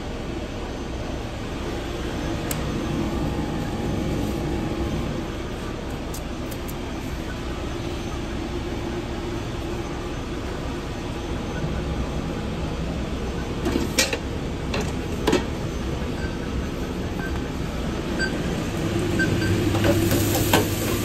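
Kitchen machinery hums steadily.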